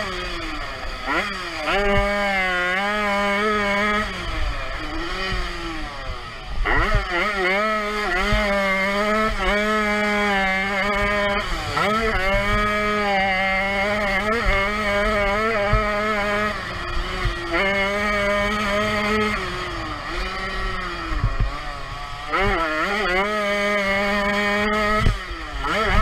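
A dirt bike engine revs hard close by, rising and falling with each gear change.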